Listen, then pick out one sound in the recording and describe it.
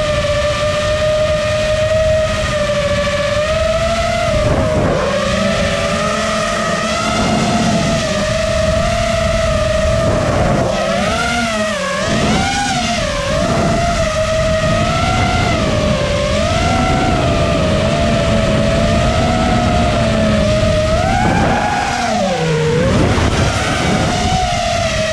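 Wind rushes past a fast-flying quadcopter.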